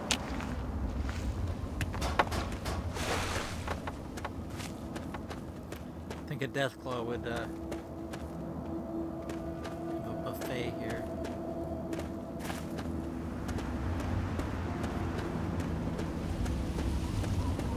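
Footsteps crunch steadily on dry, gravelly ground.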